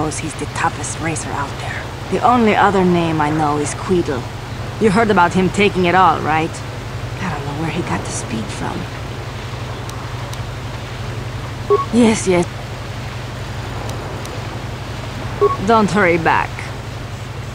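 A woman speaks calmly and dryly.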